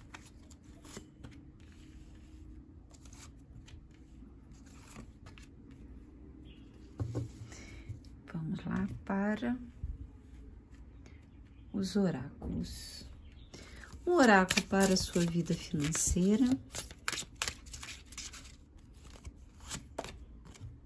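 Cards flick and rustle as they are shuffled by hand.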